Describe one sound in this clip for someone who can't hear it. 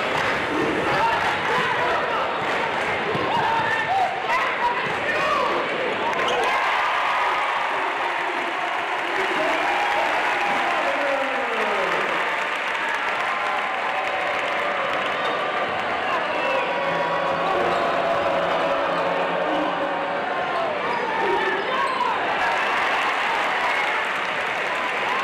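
A large indoor crowd cheers and murmurs, echoing through a big hall.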